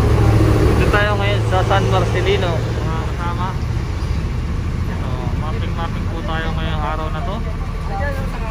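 Men talk to each other outdoors over a low rumble.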